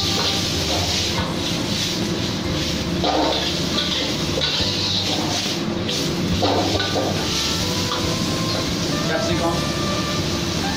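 Food sizzles and crackles in a hot wok.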